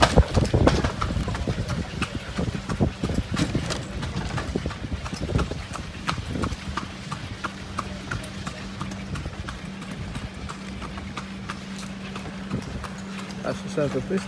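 Horse hooves clop steadily on a paved street.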